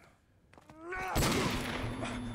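A single gunshot bangs loudly.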